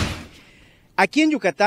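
A man speaks with animation into a microphone outdoors.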